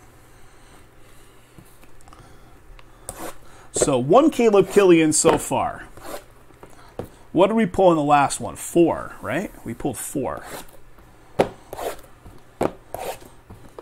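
Small cardboard boxes are stacked and knocked together.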